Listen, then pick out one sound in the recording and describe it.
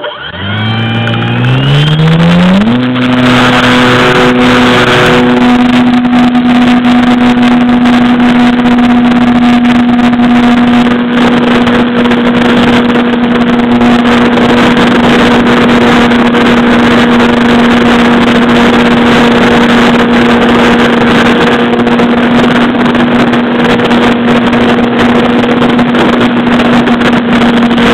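An electric motor whines up to a high steady pitch close by.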